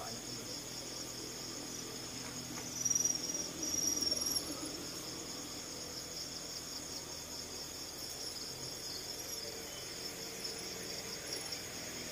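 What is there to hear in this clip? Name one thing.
A monkey picks at food on a plate with faint clinks.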